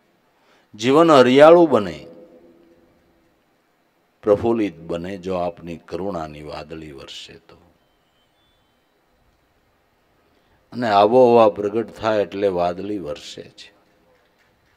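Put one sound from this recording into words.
An elderly man speaks slowly into a microphone, pausing between phrases.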